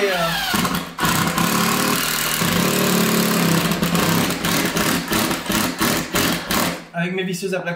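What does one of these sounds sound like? A cordless drill whirs as it drives a screw into wood.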